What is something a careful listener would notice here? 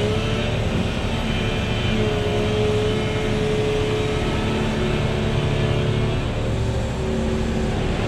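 An excavator's hydraulics whine as its arm swings.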